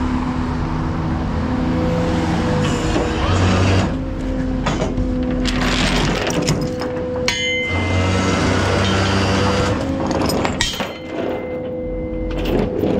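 A truck engine idles steadily nearby.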